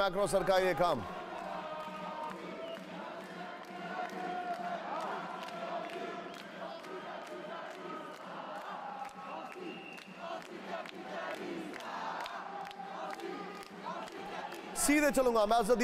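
A crowd of protesters shouts and chants.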